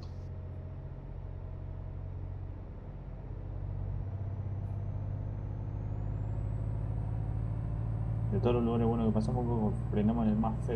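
A truck engine hums steadily and slowly grows louder.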